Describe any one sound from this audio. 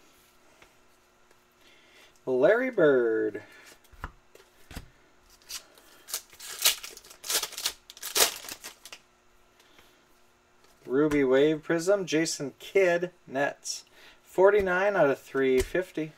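Trading cards slide and shuffle against each other.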